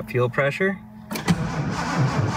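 A car ignition key clicks as it turns.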